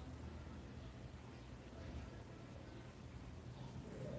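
A paintbrush brushes softly across fabric.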